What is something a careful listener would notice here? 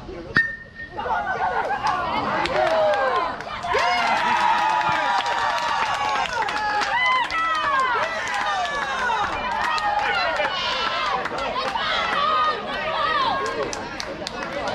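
A crowd of young players and spectators cheers and shouts excitedly outdoors.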